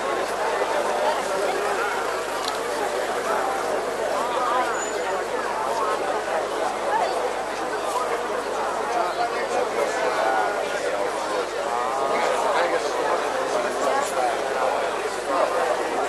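A large outdoor crowd chatters loudly all around.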